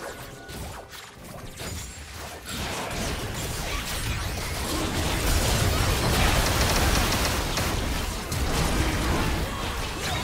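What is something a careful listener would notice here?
Game spell effects whoosh and crash in a fierce battle.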